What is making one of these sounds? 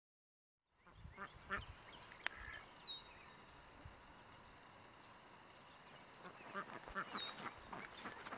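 Ducks quack and chatter nearby outdoors.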